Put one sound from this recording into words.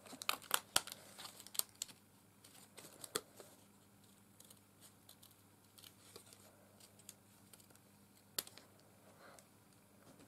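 Paper rustles and crinkles as it is turned.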